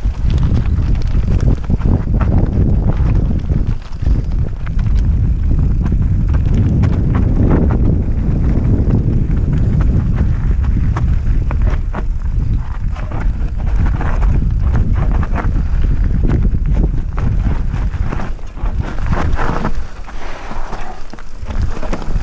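Twigs and stones knock and clatter against a bicycle.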